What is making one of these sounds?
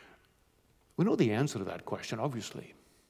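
A middle-aged man speaks calmly into a microphone in a large room.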